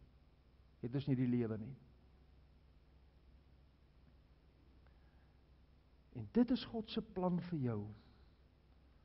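An elderly man speaks slowly and earnestly through a microphone.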